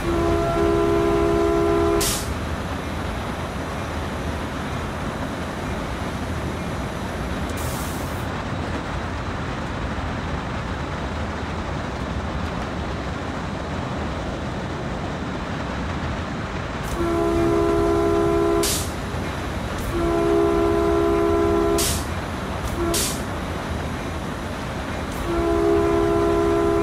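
Steel wheels roll and clatter over rails.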